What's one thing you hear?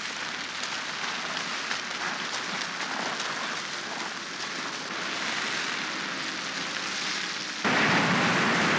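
Loose stones crunch and shift under a child crawling.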